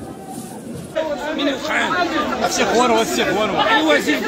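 A crowd of men shouts excitedly nearby.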